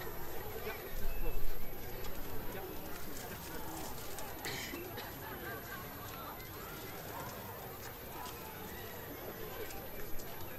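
A crowd murmurs quietly outdoors.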